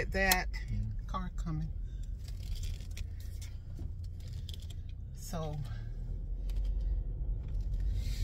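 A car engine hums steadily with road noise inside the car.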